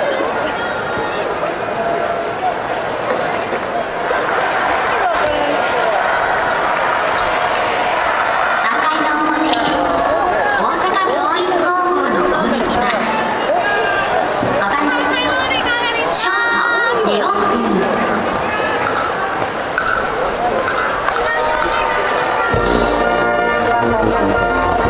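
A large crowd cheers and chants steadily in an open stadium.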